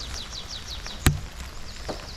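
A wooden log thuds onto the ground.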